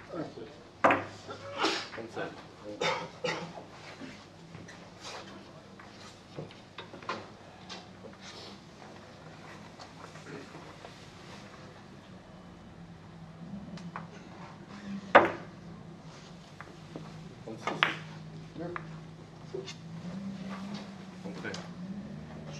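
Billiard balls clack sharply against each other and the cushions.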